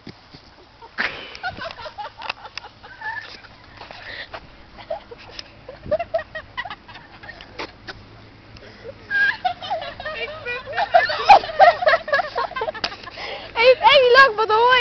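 Young women shout and scream nearby.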